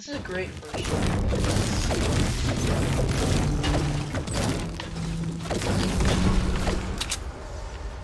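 A pickaxe strikes rock repeatedly.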